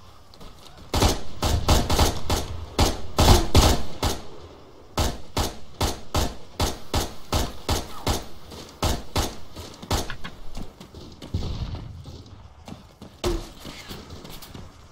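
A rifle fires rapid bursts of sharp shots.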